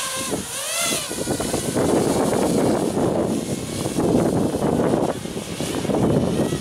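A small drone's motors whine and rise in pitch as it lifts off and flies overhead.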